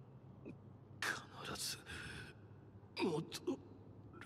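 A young man speaks quietly and earnestly.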